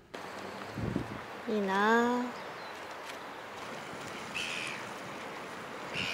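Waves lap gently on a stony shore.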